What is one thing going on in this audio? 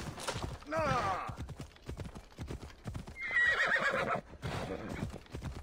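Horse hooves thud steadily at a gallop.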